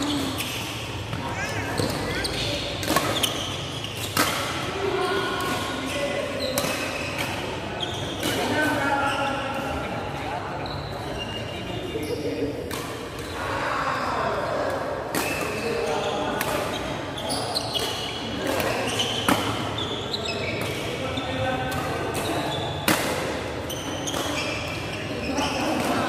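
Shoes squeak and thud on a court floor.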